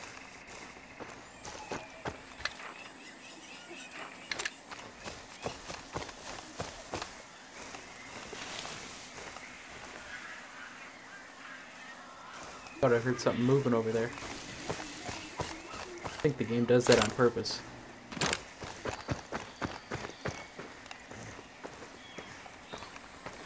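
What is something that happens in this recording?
Footsteps rustle through tall grass and crunch on a dirt path.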